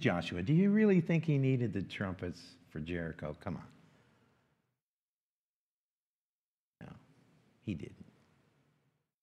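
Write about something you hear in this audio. A middle-aged man speaks calmly through a microphone in an echoing hall, pausing between phrases.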